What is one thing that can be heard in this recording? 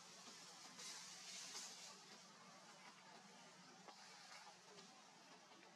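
Leaves rustle as a small monkey climbs through thin branches.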